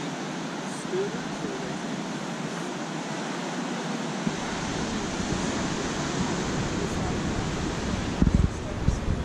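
Sea waves surge and crash below, heard as a steady rushing roar.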